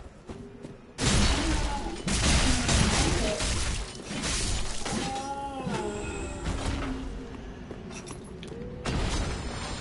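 Swords clash and strike in loud bursts.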